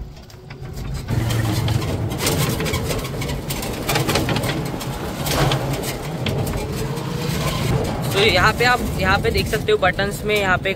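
A small vehicle rumbles along a road.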